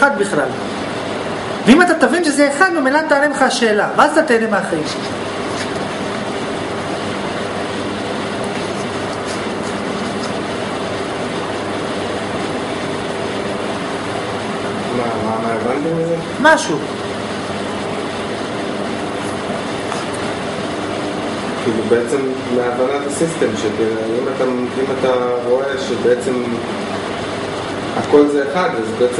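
A young man speaks calmly and close by, with pauses.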